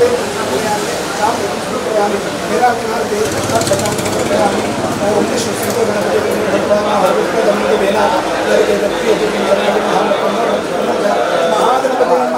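A crowd of men and women talks and murmurs nearby.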